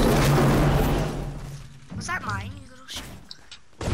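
A pickaxe strikes a wall with sharp knocks.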